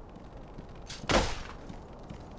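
A sword strikes with a sharp clang.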